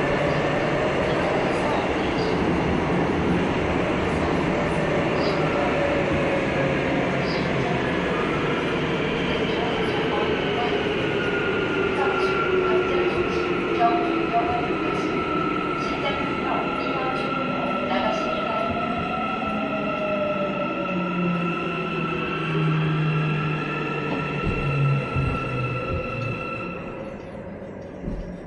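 A subway train rumbles along the track from inside a car.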